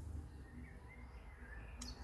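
A finger taps lightly on a touchscreen.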